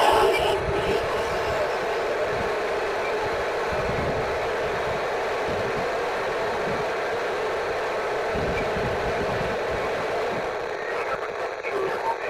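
A handheld radio gives off a steady hiss of static.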